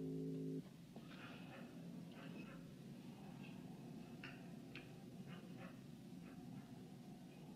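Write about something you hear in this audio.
Small metal parts tick and click as wires are handled.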